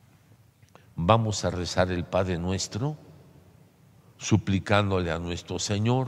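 An elderly man speaks slowly and solemnly through a microphone in an echoing hall.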